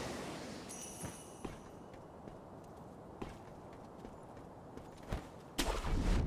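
Footsteps patter on roof tiles.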